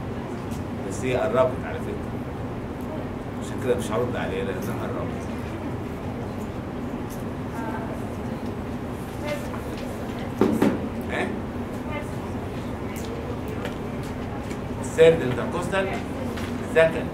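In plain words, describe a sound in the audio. A middle-aged man speaks calmly and slowly into a microphone, with long pauses.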